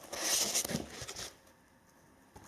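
A cardboard lid scrapes and rubs as it is lifted off a box.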